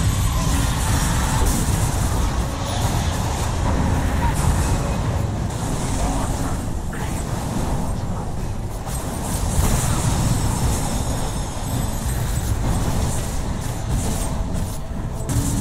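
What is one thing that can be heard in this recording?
Magic spells crackle and boom in a fierce fight.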